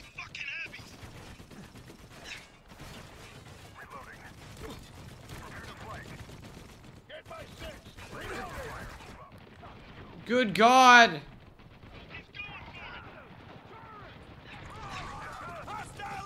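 Gunfire cracks in bursts.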